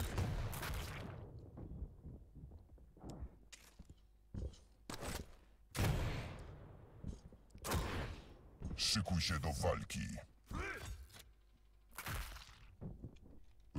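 Loud explosions blast in short bursts.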